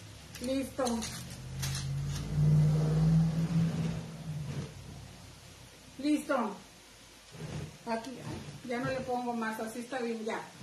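A middle-aged woman speaks close by, with animation.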